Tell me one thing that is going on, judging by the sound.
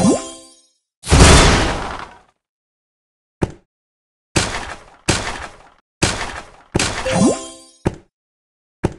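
Game blocks pop and burst in short bursts of sound.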